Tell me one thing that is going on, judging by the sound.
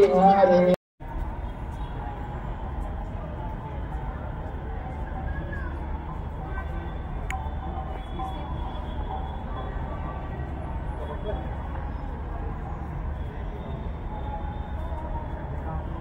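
A crowd murmurs softly in the distance outdoors.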